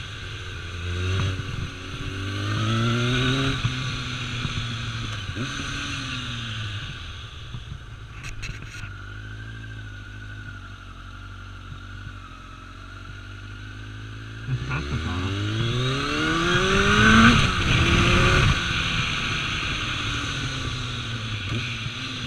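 A motorcycle engine hums and revs up and down as it rides.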